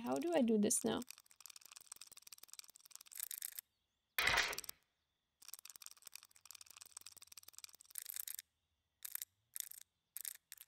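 A safe dial clicks as it turns.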